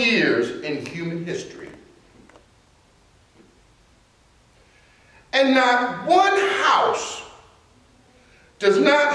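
A middle-aged man preaches with animation into a microphone, pausing between phrases.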